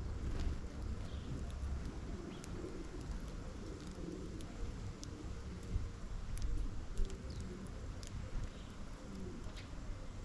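Small birds' wings flutter as they land and take off.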